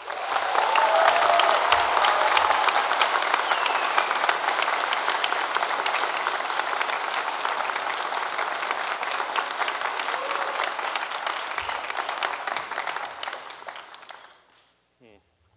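An audience applauds and cheers loudly in a large hall, then the applause fades.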